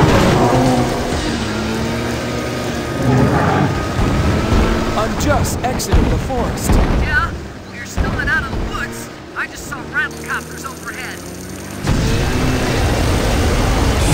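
A vehicle engine roars as it races along.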